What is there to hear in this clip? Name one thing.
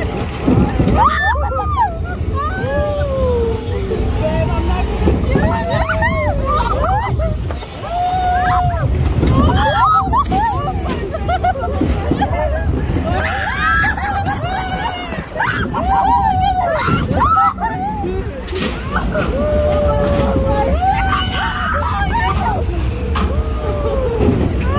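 Young women and men scream and laugh excitedly close by.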